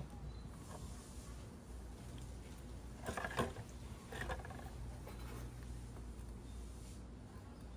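Metal parts clink as a brake caliper is handled.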